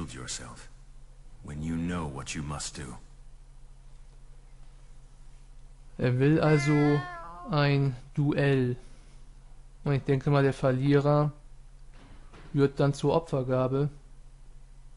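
A young man speaks calmly and clearly.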